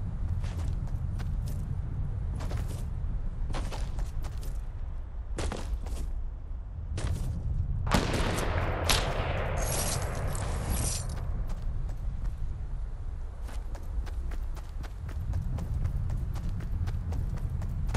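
Footsteps run on grass.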